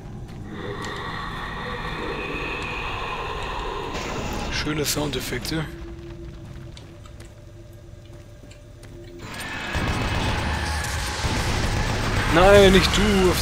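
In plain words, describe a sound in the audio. A monster screeches and growls.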